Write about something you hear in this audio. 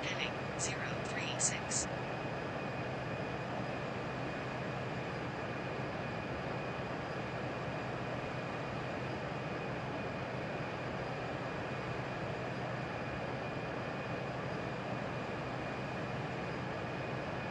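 Jet engines hum steadily in a cockpit.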